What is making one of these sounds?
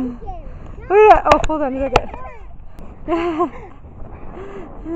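Children shout and laugh nearby.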